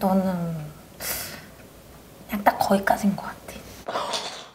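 A young woman talks calmly close to a microphone.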